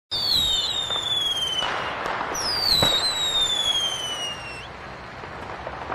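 Fireworks crackle and hiss.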